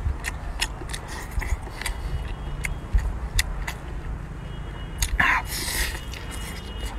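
A man sucks and slurps loudly while eating shellfish up close.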